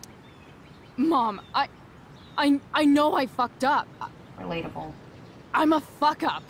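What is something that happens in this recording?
A young woman speaks in a shaky, apologetic voice.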